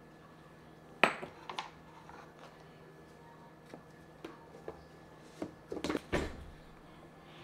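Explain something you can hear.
A plastic lid clicks open and shut.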